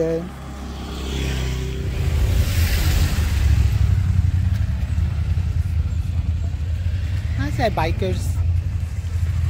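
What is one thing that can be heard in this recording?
Motorcycle engines rumble nearby.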